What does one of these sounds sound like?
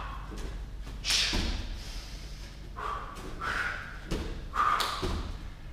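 A man lands barefoot on padded mats with dull thuds.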